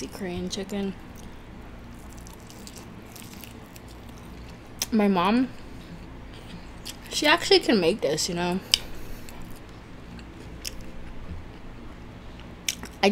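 A young woman chews and bites into crispy food close to a microphone.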